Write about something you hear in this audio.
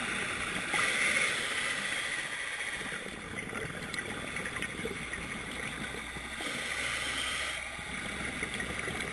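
Muffled water rushes and crackles steadily underwater.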